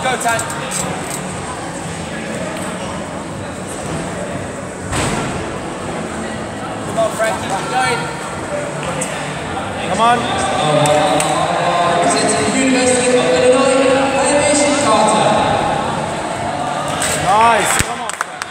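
A crowd of men and women murmurs and chatters in a large echoing hall.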